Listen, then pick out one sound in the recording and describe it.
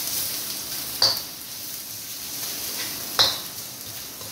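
A spatula scrapes and knocks against a metal wok.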